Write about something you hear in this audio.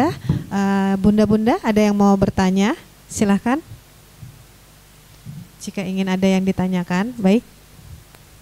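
A woman recites in a long, melodic chant close to a microphone, with pauses.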